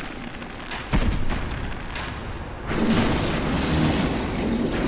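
A sword strikes a creature with loud thuds.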